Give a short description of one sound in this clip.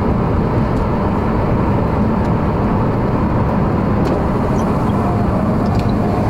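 Tyres hum steadily on the road.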